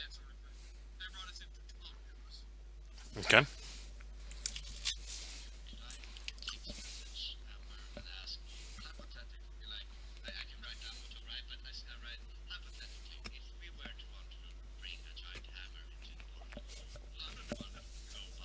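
A man talks casually over an online call, heard through a microphone.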